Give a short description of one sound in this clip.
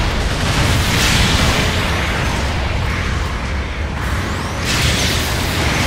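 Electric crackling zaps loudly.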